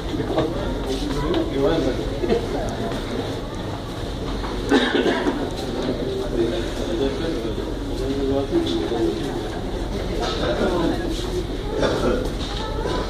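A crowd of adults chatters nearby in an echoing corridor.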